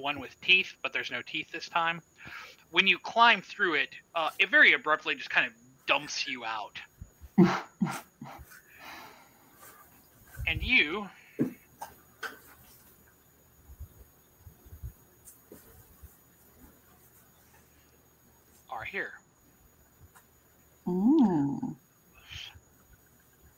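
A man talks with animation over an online call.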